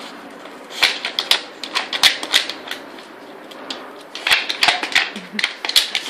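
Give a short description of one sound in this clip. Wooden pieces clack and scrape as a dog nudges them with its nose.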